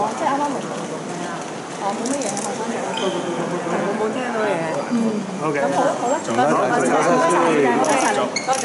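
A crowd of men and women talk over one another loudly and excitedly, close by.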